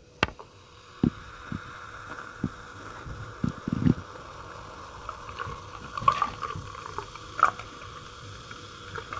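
A fizzy drink crackles and hisses in a glass.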